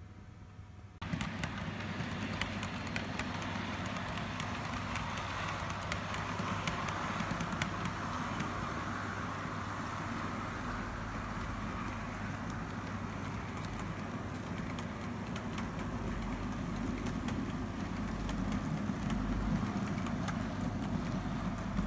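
A model train rumbles and whirs steadily along its track close by.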